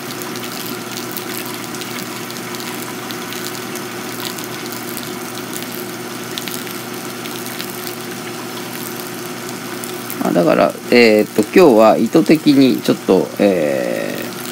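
Hot water trickles steadily onto wet coffee grounds.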